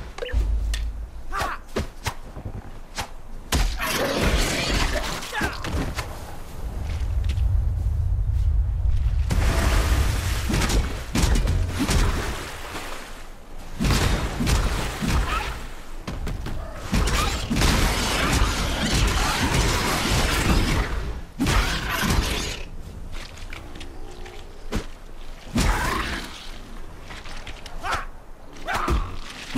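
Weapons strike with heavy thuds and crunches.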